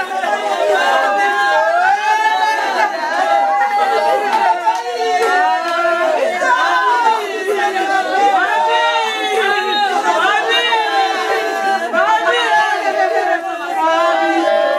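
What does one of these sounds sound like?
Several women wail and cry loudly nearby.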